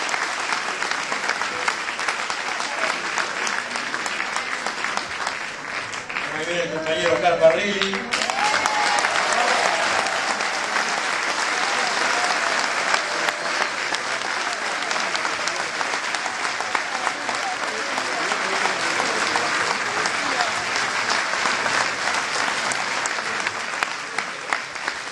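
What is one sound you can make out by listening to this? A crowd applauds steadily in a large echoing hall.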